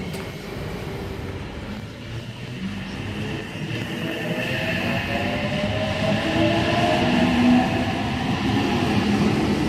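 An electric train pulls into a station, its motors whining and rising in pitch.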